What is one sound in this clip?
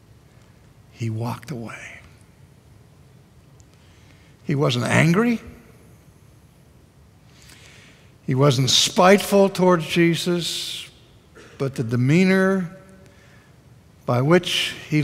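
An elderly man speaks expressively through a microphone, with pauses between phrases.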